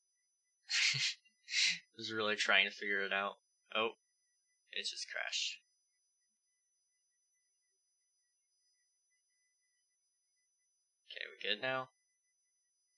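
A young man speaks casually into a headset microphone, in short bursts with pauses.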